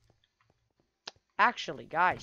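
A wooden chest clicks open.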